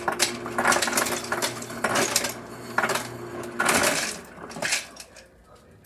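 Ice cubes clatter out of a refrigerator dispenser.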